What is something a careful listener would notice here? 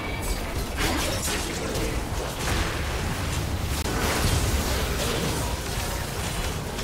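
Spell blasts and hits burst and crackle rapidly in a game battle.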